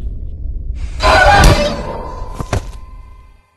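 A sharp blow hits with a loud crash.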